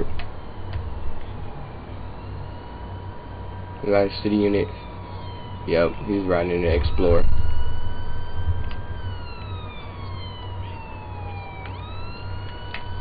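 A police siren wails in short rising and falling sweeps.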